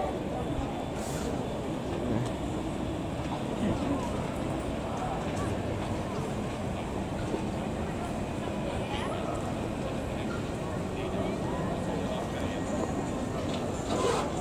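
A tram rumbles closer along the rails.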